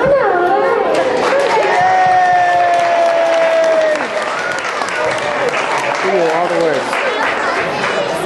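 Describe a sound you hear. Young children clap their hands.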